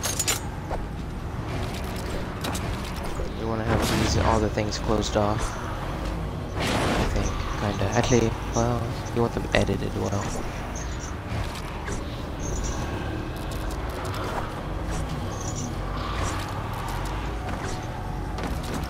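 Building pieces snap into place with sharp clacks.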